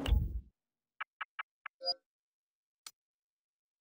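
Short menu clicks tick in quick succession.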